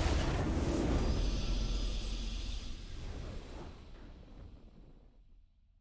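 A triumphant fanfare swells and fades away.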